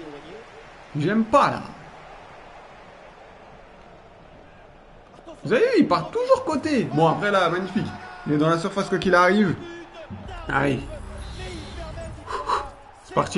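A young man talks excitedly into a nearby microphone.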